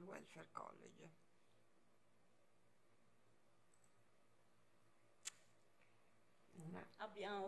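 A woman speaks calmly into a microphone, with pauses.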